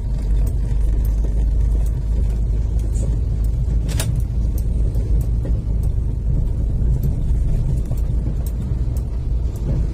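A truck passes by on the road.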